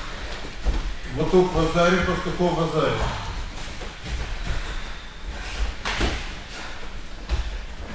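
Bare feet pad across a mat.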